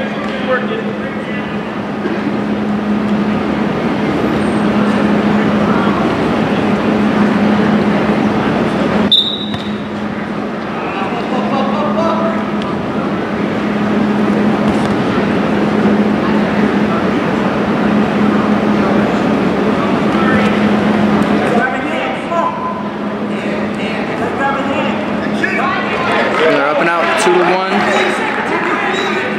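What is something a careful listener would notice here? A crowd of spectators murmurs and chatters in a large echoing gym.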